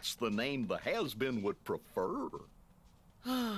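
A woman speaks in a sly, mocking voice.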